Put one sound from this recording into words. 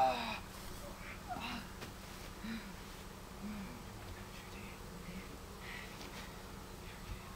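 Bodies thump onto a padded mat.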